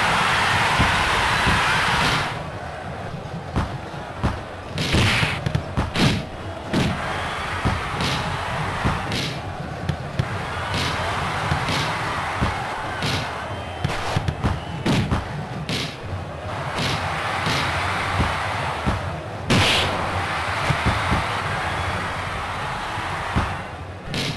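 A crowd cheers and roars steadily in a stadium.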